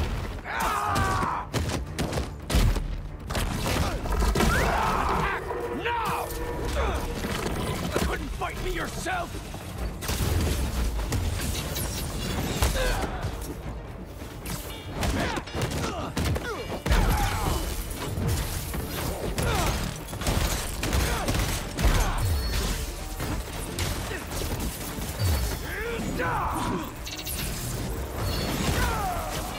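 Heavy blows thud and crack in a fast fight.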